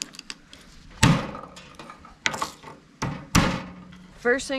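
A knife knocks on a wooden board.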